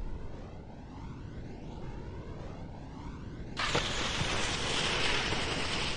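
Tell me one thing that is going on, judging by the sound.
Wind rushes past a ski jumper flying through the air.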